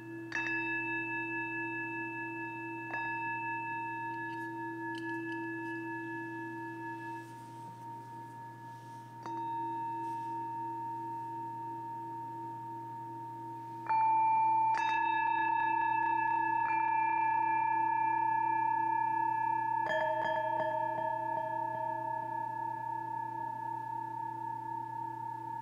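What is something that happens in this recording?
Metal singing bowls are struck and ring out with long, clear, slowly fading tones.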